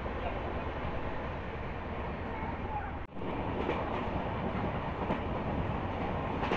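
Wind rushes loudly past an open train door.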